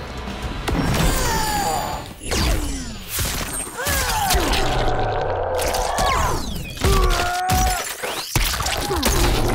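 Heavy blows land with wet, crunching thuds.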